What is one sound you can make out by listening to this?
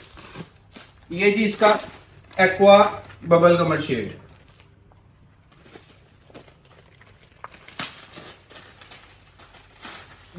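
Wrapped fabric packets rustle and tap as they are handled.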